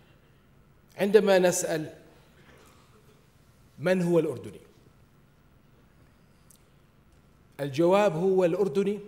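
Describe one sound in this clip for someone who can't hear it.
A middle-aged man speaks slowly and deliberately into a microphone, in bursts with long pauses.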